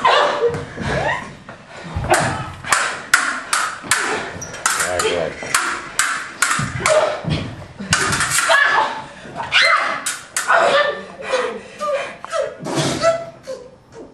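Metal swords clash and clang sharply, again and again.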